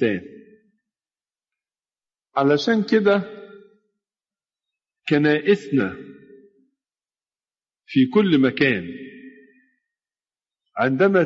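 An elderly man speaks slowly in short phrases, in an echoing space.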